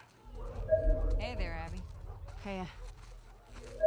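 A young woman calls out a short, friendly greeting.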